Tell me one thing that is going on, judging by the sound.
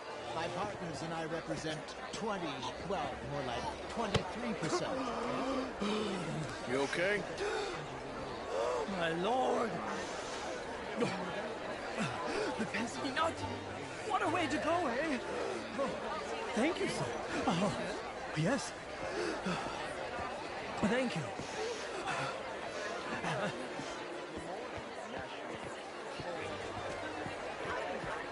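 Men talk calmly at close range.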